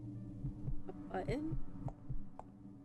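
A young woman speaks briefly and softly close to a microphone.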